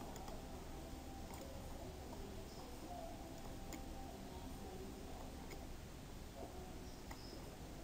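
A pickaxe taps and chips at stone.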